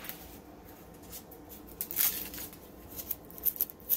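Dry onion skin crackles as hands peel it.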